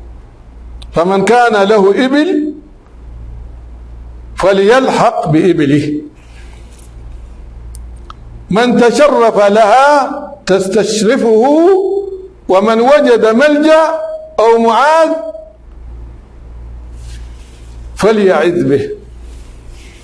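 A man recites slowly and melodiously into a close microphone, with long pauses.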